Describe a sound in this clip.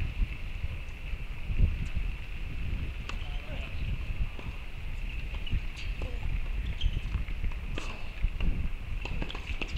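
A tennis ball is hit with a racket in the distance.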